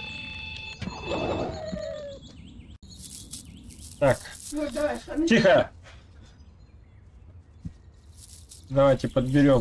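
Footsteps tread on dry leaves and soil.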